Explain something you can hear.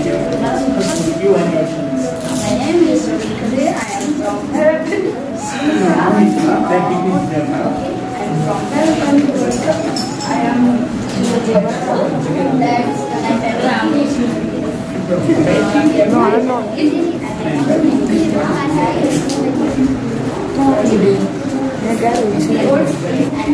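A young boy answers aloud.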